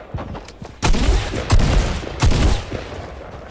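A pickaxe strikes hard with heavy thuds.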